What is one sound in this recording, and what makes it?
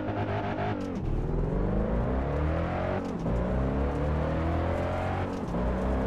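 Gears shift with a brief dip in the engine's roar.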